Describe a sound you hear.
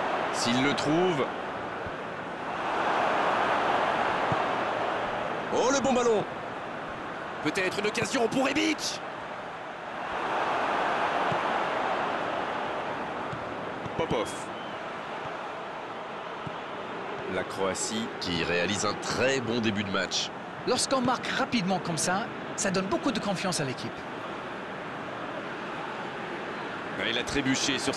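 A stadium crowd cheers and roars steadily, swelling at times.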